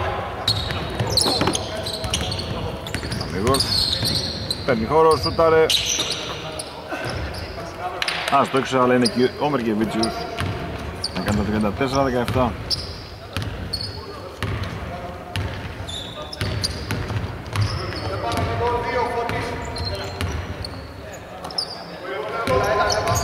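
Sneakers squeak sharply on the floor in a large echoing hall.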